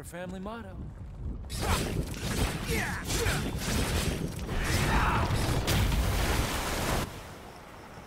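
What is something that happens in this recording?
A blade slashes wetly into a fleshy mass.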